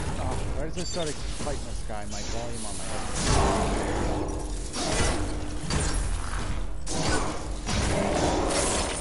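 Sci-fi weapons blast and crackle in rapid bursts.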